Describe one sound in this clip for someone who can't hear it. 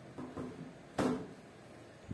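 A plastic box knocks down onto a plastic lid.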